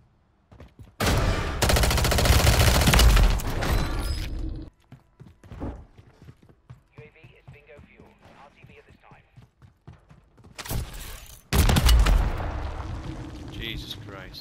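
A rapid burst of gunfire rings out, loud and close.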